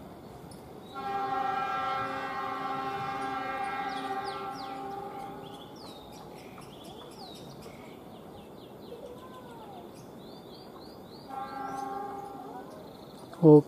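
A train horn blares loudly, twice.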